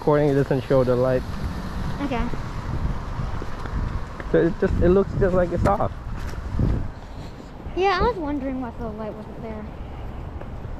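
A young boy speaks close by with animation.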